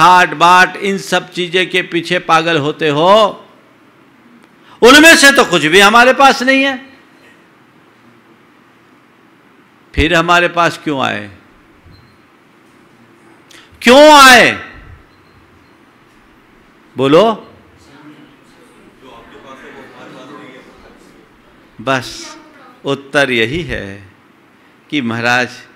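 An elderly man speaks slowly and expressively into a microphone, in bursts with long pauses.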